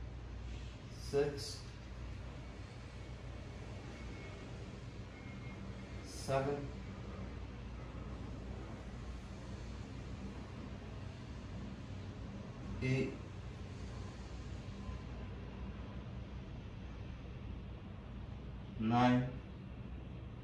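A man breathes out deeply and slowly, close by.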